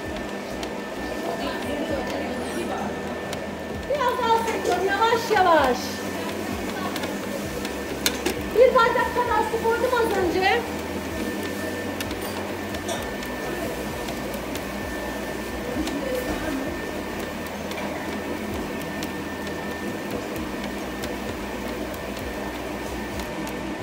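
A stand mixer motor hums steadily as its paddle churns a thick dough.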